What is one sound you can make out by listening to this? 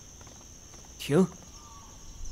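A man shouts a sharp command nearby.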